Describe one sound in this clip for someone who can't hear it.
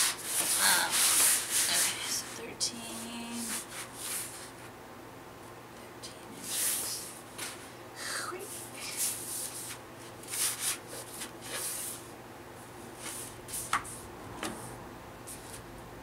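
Paper rustles and slides as hands smooth and shift a sheet.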